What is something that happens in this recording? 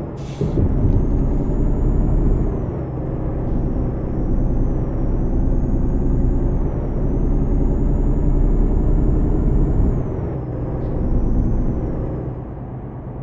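A truck engine rumbles steadily, rising and falling as it drives.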